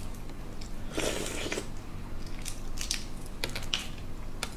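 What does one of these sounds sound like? A young woman chews and eats close to a microphone.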